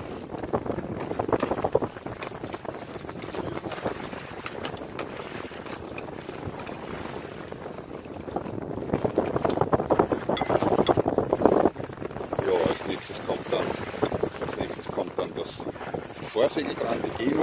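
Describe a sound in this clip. Wind blows across a microphone outdoors.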